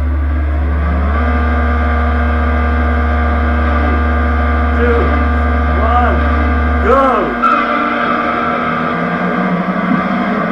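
A race car engine revs up and roars.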